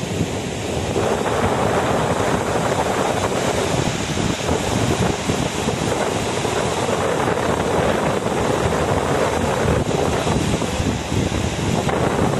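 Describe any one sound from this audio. Floodwater rushes and churns loudly over a low spillway.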